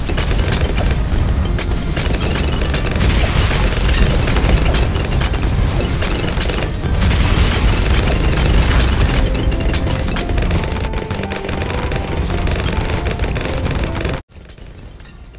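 Game effects pop and crackle rapidly.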